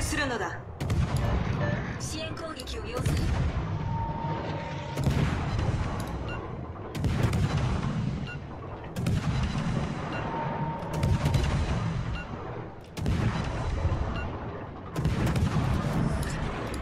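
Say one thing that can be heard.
Heavy guns boom again and again, about every two seconds.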